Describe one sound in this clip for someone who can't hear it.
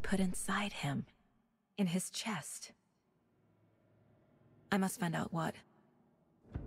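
A young woman speaks quietly and gravely, close by.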